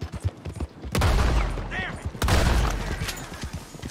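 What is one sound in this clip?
Gunshots blast loudly.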